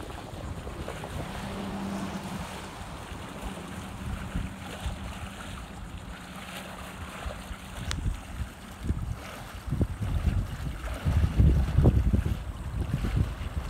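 Wind gusts outdoors, buffeting loudly in bursts.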